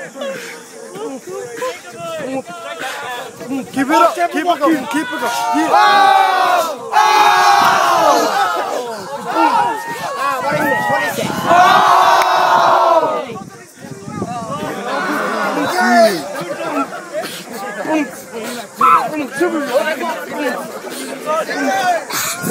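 A crowd of young people cheers and shouts loudly outdoors.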